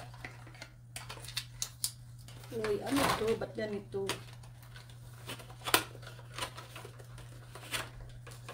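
Paper rustles and crinkles in a woman's hands.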